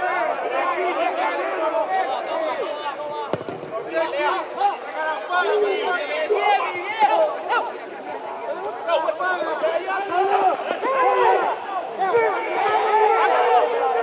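A crowd of spectators shouts and chants nearby outdoors.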